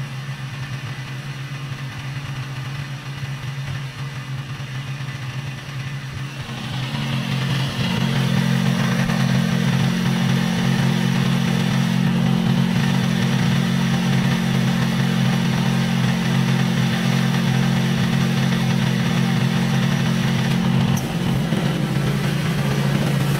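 A lawn mower engine hums steadily nearby, growing louder partway through.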